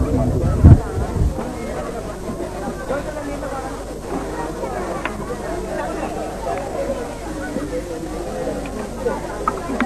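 An elderly woman talks with a strained voice.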